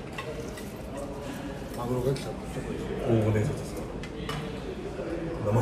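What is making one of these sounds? Young men talk and chatter nearby.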